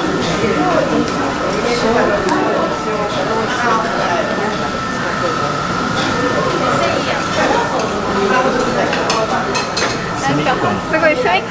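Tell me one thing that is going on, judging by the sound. Many people chatter throughout a busy room.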